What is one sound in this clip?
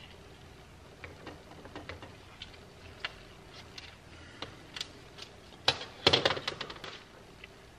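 Small metal parts click and clatter against a metal tray.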